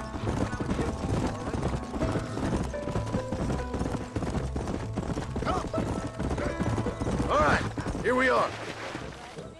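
Horses' hooves thud steadily on a dirt track.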